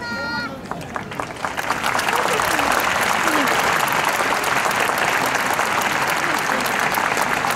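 A large crowd applauds outdoors.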